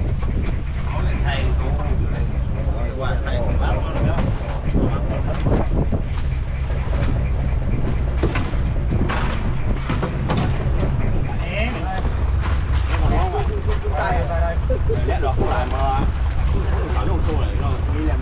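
Several men talk with one another nearby, outdoors.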